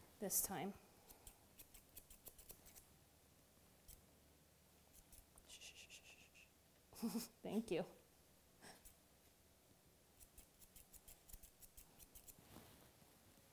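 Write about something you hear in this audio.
Scissors snip quickly through fur.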